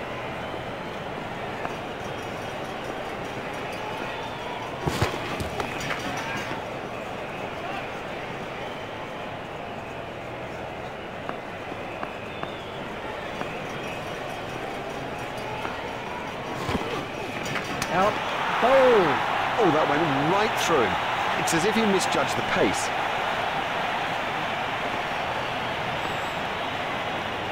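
A large crowd murmurs steadily in the distance.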